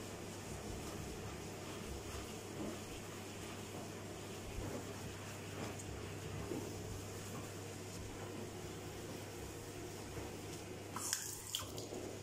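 A sponge scrubs against a ceramic sink.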